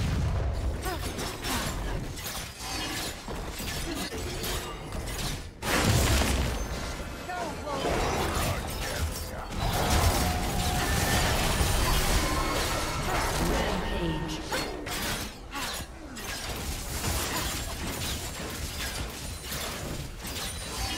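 Fantasy game combat effects whoosh and crash as magic spells and weapon hits go off.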